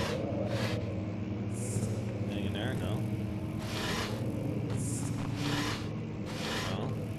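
A wooden drawer slides and scrapes in short bursts.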